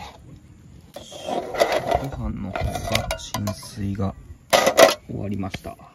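A metal lid clanks as it is lifted off a metal pot.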